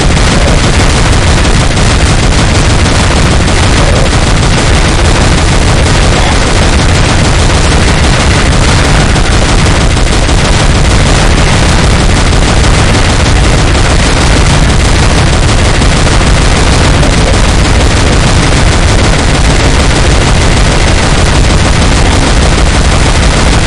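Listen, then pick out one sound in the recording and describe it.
A rapid-fire energy gun shoots in continuous bursts.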